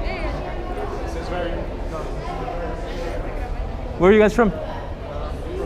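Several adults chatter nearby outdoors.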